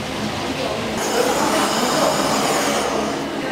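A gas torch hisses and roars as a burner lights.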